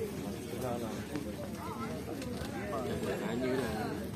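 Middle-aged men talk in conversation close by.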